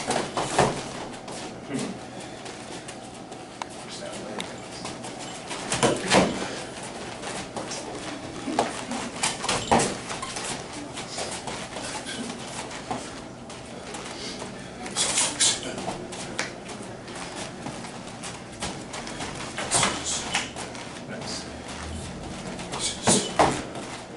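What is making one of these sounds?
Feet shuffle and stamp softly on a padded floor.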